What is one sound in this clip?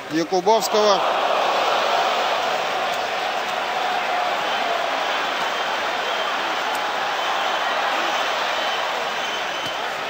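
A crowd cheers and roars loudly.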